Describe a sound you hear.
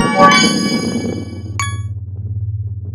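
Coins chime brightly as they are collected.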